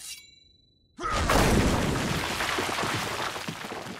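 A brick wall crumbles and collapses with a loud rumbling crash.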